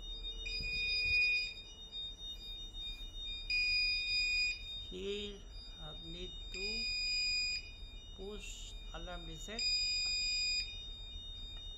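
An electronic alarm sounds in long, high repeated tones.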